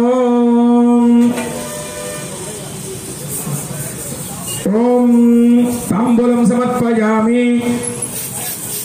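A man chants loudly in long, steady notes.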